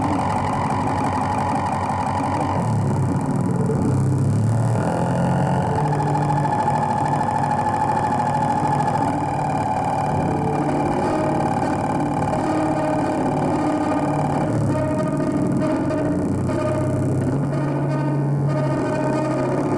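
Droning electronic music plays loudly over speakers, with shifting pitched tones and buzzing textures.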